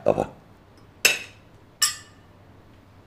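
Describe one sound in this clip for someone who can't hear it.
Glasses clink together.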